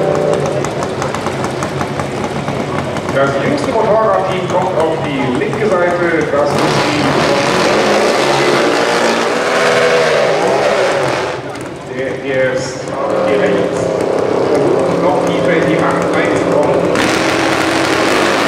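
Drag racing motorcycle engines rumble and rev loudly nearby.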